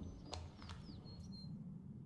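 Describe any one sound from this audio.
A handheld device beeps electronically.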